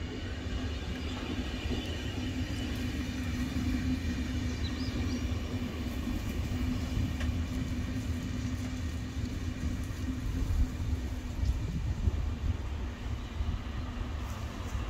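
A passenger train rolls slowly along the tracks with a low rumble.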